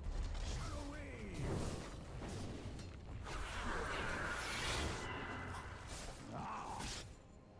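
Magic spells whoosh and burst in a video game battle.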